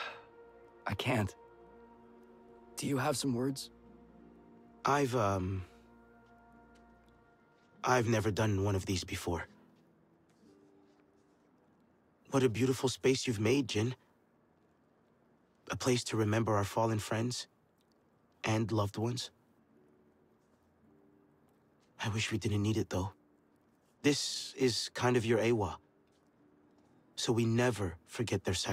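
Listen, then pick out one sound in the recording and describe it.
A young man speaks calmly in short phrases, close to a microphone.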